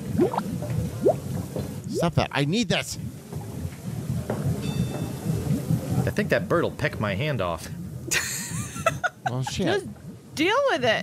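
A woman talks and laughs through a microphone.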